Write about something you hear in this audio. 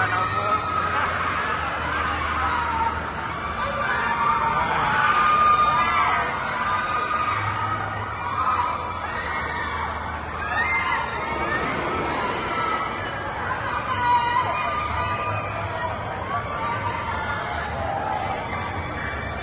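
Riders scream and shriek on a spinning fairground ride.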